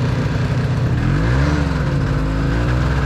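A snowmobile engine revs up and pulls away.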